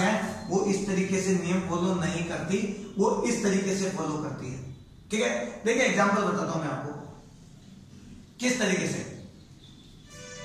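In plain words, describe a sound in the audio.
A young man speaks loudly and clearly, as if explaining, close by.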